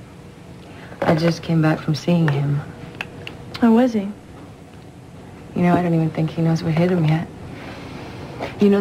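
A woman speaks close by in a calm, earnest voice.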